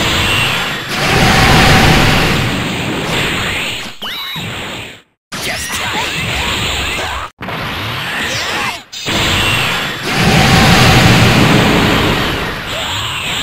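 Energy blasts roar and crackle loudly.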